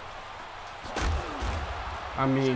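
Football players collide with a heavy thud.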